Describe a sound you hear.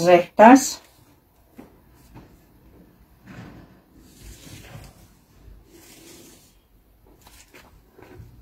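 Paper rustles softly under a hand.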